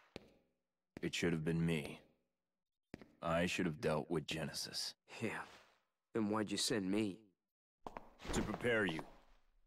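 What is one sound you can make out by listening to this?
A man speaks in a low, calm voice.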